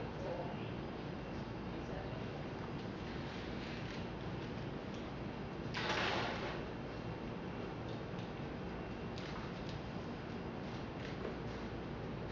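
Footsteps of a man walk across a hard floor.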